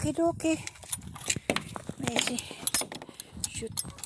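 A gate latch clicks and rattles.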